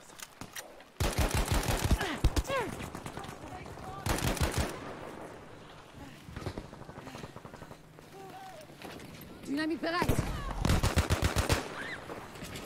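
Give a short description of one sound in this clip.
Rifle shots crack in rapid bursts.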